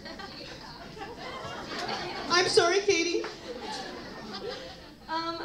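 Several young women chatter and laugh nearby.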